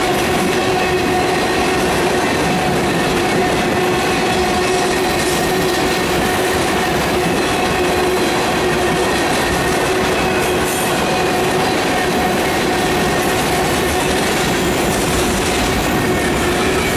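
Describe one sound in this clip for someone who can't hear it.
Steel wheels squeal and screech on the rails.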